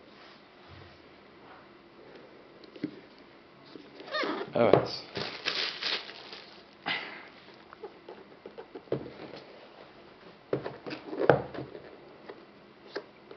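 Hands handle a cardboard box, which scrapes and taps on a hard tabletop.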